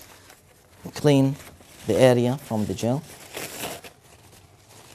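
A man speaks briefly and clearly, close by.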